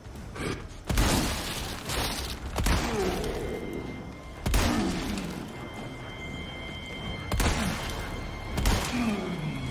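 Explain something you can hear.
A rifle fires loud shots that echo.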